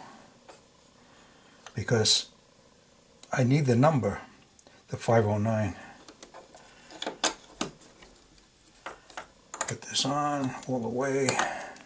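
A plastic spool of thread clicks and rattles against a sewing machine.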